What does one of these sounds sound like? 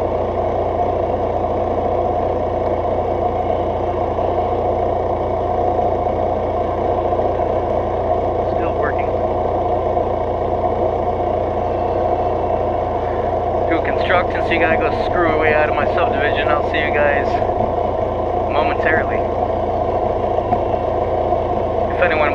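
A motorcycle engine idles with a steady low rumble.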